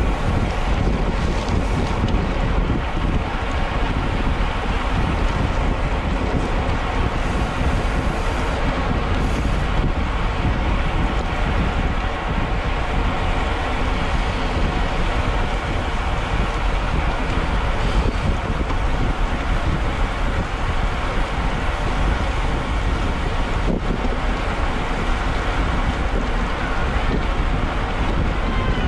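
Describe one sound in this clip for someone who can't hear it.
Bicycle tyres hiss on a wet road.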